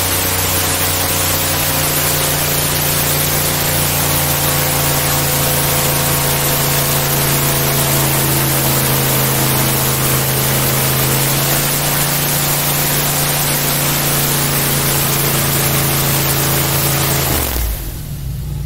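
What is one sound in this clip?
Water rushes and sprays behind a fast-moving boat.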